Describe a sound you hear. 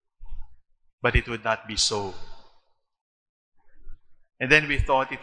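A man speaks slowly and solemnly through a microphone in a large echoing hall.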